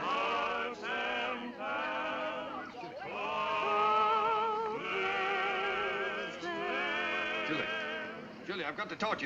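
A crowd of men and women sings loudly together.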